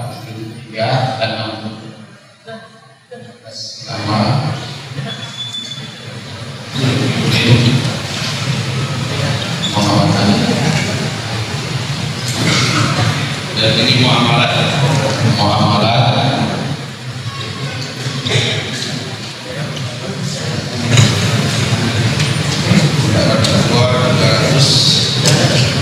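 A man speaks steadily into a microphone, with short pauses.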